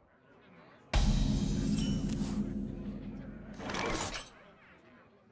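A game chime sounds as a new turn begins.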